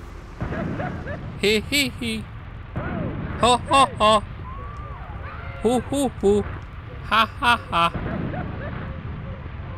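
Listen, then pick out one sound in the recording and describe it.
Loud explosions boom.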